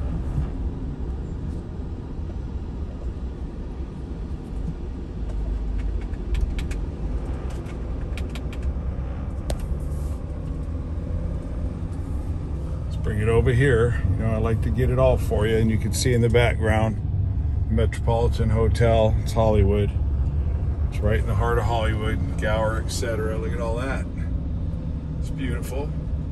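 A car's engine and tyres rumble steadily on a highway.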